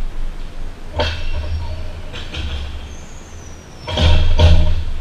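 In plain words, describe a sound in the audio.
Young men call out to each other while playing.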